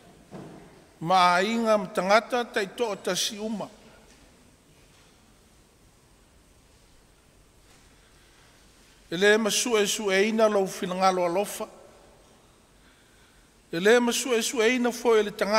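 An elderly man preaches through a microphone in bursts, with long pauses between them.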